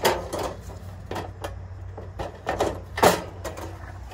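A plastic lid clatters open.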